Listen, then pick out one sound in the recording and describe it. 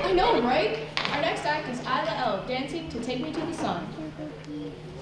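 A young woman speaks with animation into a microphone, heard through loudspeakers in a hall.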